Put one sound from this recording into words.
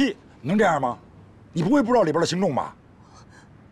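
A woman speaks tearfully close by.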